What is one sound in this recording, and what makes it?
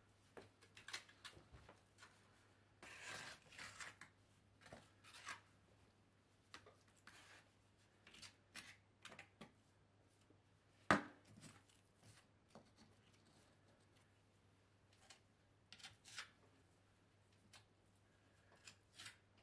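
A trowel scrapes and presses mortar into gaps between stones.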